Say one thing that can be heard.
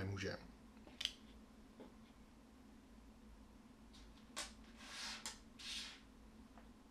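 Playing cards slide and tap on a table.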